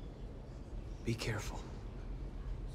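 A man speaks in a low, firm voice.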